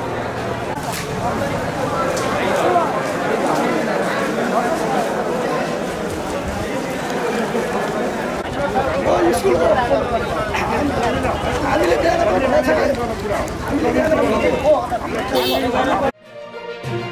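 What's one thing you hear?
A crowd murmurs and talks outdoors.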